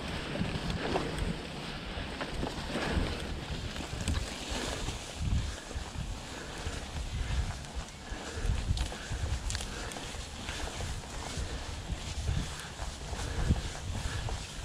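Tall grass swishes against a moving bicycle.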